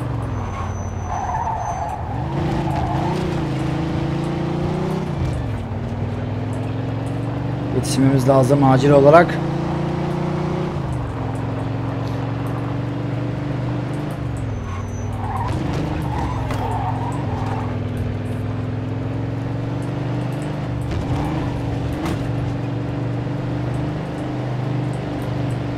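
A car engine hums steadily, rising and falling as it speeds up and slows down.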